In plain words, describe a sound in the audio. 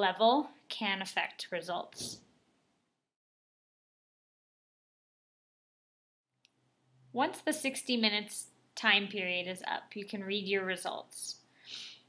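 A young person speaks calmly and close by, with pauses.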